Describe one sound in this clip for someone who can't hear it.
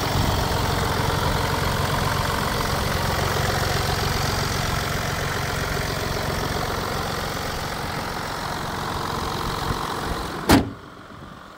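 An engine idles with a low rumble.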